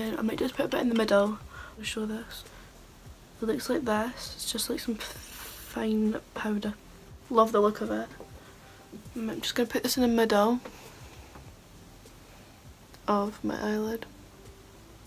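A young woman talks calmly and close to a microphone.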